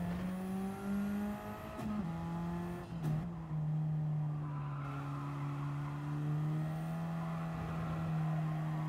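A racing car engine drones steadily and drops in pitch as gears shift.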